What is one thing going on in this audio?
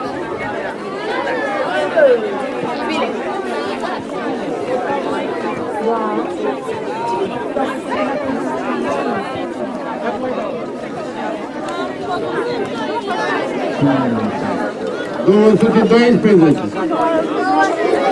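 A crowd of men and women chatter nearby outdoors.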